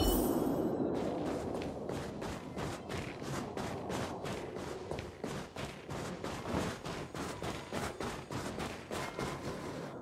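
Quick footsteps crunch on snow.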